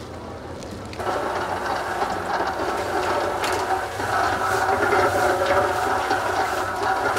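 A cement mixer drum turns and churns wet concrete with a rumble.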